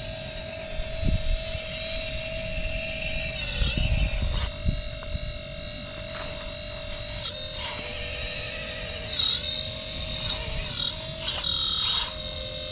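Plastic tracks clatter and rattle over dry leaves.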